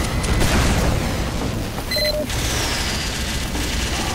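A heavy video game machine gun spins up and fires rapidly nearby.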